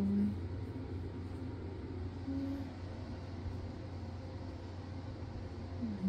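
A cat purrs steadily and loudly up close.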